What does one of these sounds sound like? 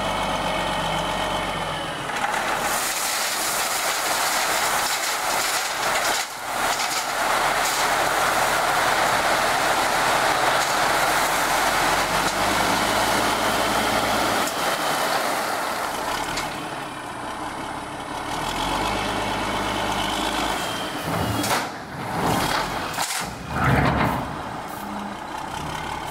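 A diesel truck engine idles steadily.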